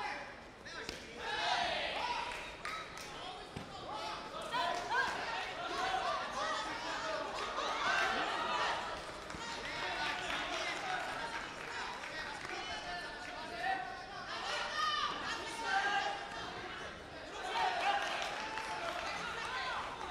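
A crowd cheers and shouts in loud bursts.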